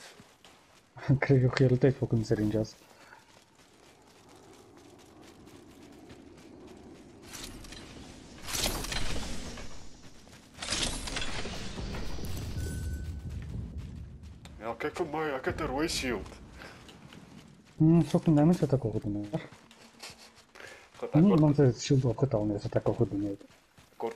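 Footsteps patter over grass and dirt.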